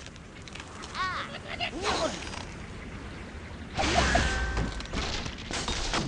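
A cartoon bird squawks as it flies through the air.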